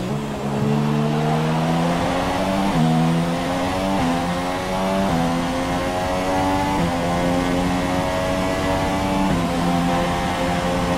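Tyres hiss through spray on a wet track.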